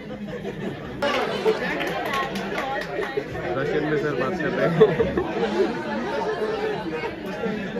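A room full of young people murmurs.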